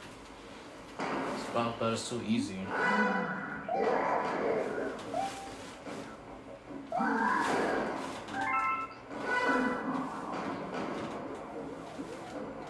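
Video game sounds play from a television speaker.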